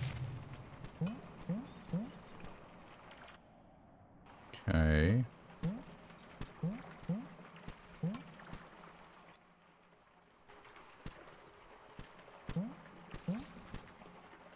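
Short rising blips sound as a small game character hops from ledge to ledge.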